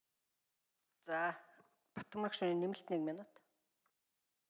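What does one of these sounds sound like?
A middle-aged woman speaks calmly into a microphone in a large hall.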